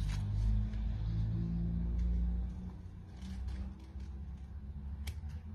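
Scissors snip through paper close by.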